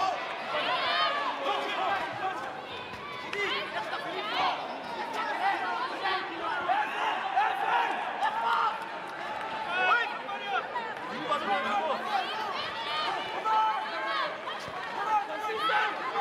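A crowd cheers and shouts throughout a large echoing hall.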